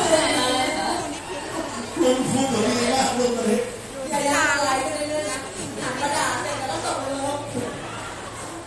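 A young woman speaks cheerfully into a microphone over loudspeakers.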